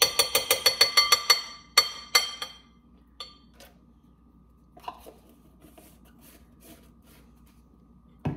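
A woman taps a container, shaking food into a glass bowl.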